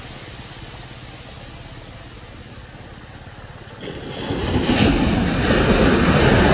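Small waves wash softly up onto a sandy shore.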